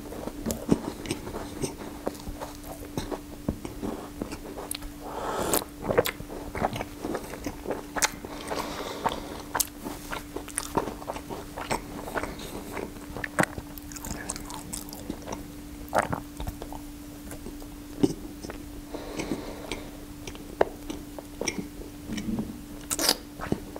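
Crisp pastry crackles and crunches between fingers.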